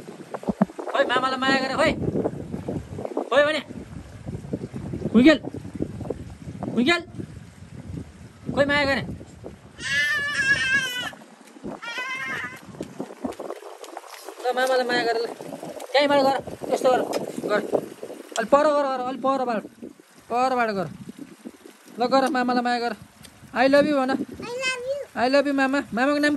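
A small child speaks and babbles in a high voice close by.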